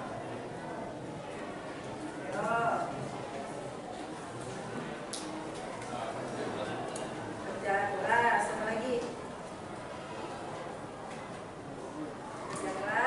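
A woman speaks to a room, heard from a distance.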